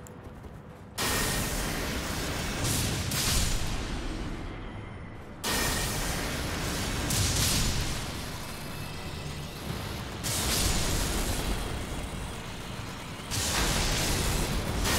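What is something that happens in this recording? Lightning crackles and booms loudly as bolts are hurled.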